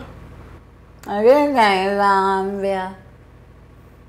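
A woman speaks close by in a mocking, sing-song voice.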